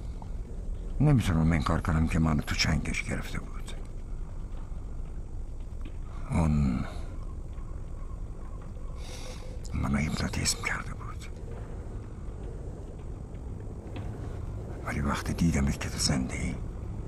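A man speaks softly and tenderly, close by.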